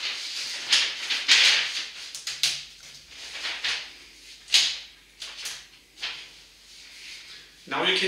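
A marker squeaks and scratches on paper.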